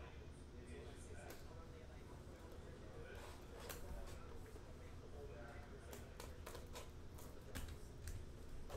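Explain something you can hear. Plastic wrapping crinkles and rustles as a box is handled.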